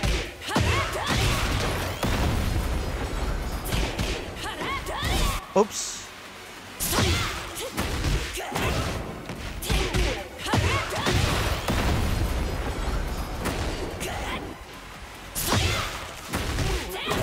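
Fighters land heavy punches and kicks with sharp impact sounds.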